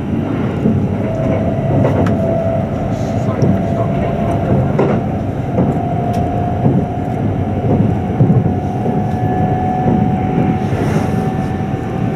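An electric train's traction motors whine, rising in pitch.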